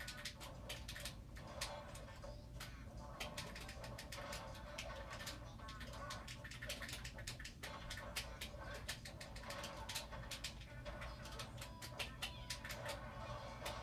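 Upbeat video game music plays from a television speaker.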